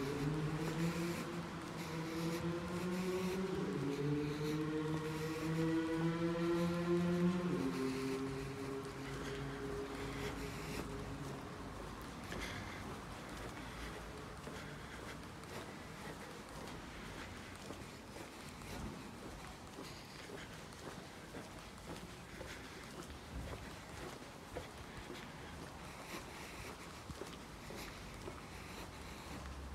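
Footsteps tap steadily on a paved sidewalk.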